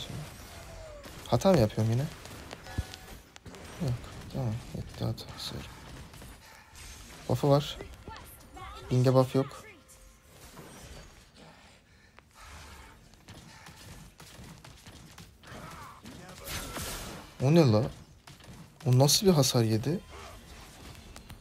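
Spell effects whoosh and burst in a video game battle.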